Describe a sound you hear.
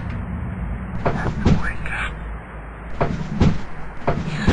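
A wooden drawer slides open and shut.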